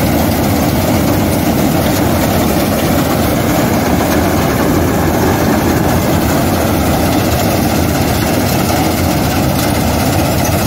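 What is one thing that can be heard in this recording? A combine harvester's header clatters as it cuts dry wheat stalks.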